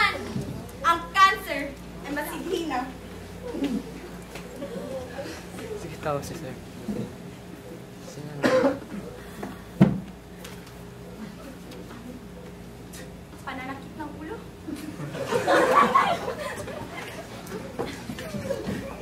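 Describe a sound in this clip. A young woman speaks loudly to an audience in a hall with some echo.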